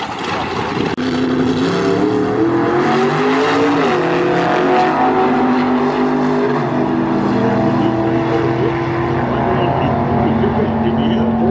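Race cars roar away at full throttle and fade into the distance.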